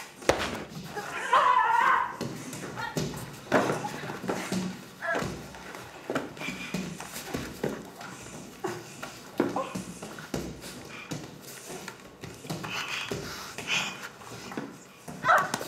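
A young woman grunts and groans with strain.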